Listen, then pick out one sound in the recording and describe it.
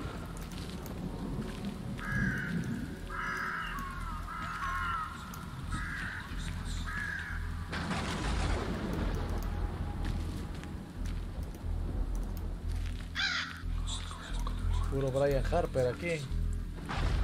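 Grass rustles under footsteps.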